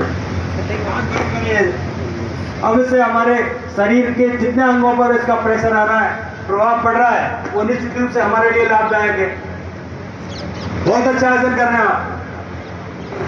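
A man's voice calls out instructions through a loudspeaker outdoors.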